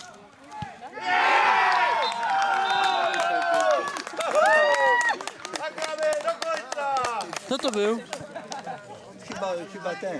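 Several men shout and cheer outdoors.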